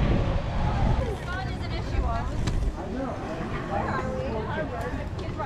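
A crowd of young adults chatters outdoors.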